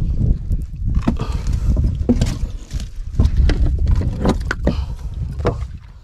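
A fish flaps and thumps on a wooden deck.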